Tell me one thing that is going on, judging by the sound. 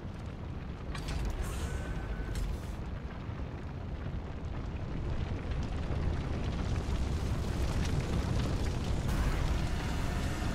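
Fire roars and crackles, growing louder.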